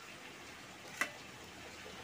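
A metal spoon clinks against a metal plate.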